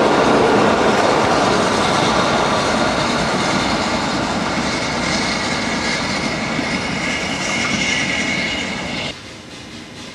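A steam locomotive chuffs as it pulls wagons away.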